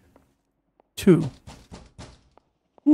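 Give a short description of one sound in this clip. A fist knocks several times on a wooden door.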